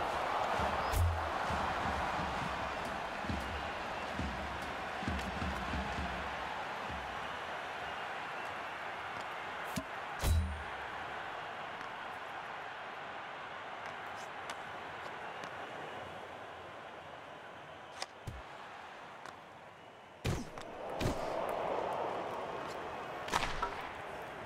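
A hockey puck is struck with a sharp crack.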